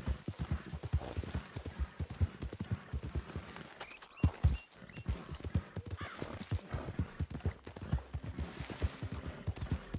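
Hooves thud quickly on soft ground as a horse gallops.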